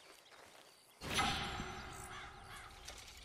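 A short, bright chime rings out.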